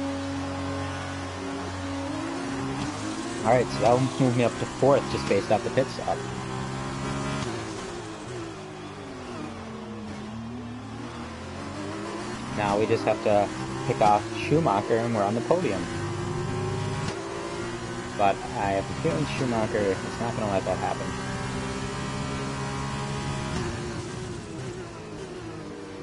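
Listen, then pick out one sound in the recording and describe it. A racing car engine roars at high revs, dropping in pitch on braking and rising again as it accelerates.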